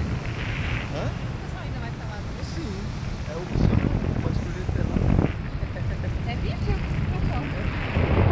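Strong wind rushes loudly past a microphone outdoors.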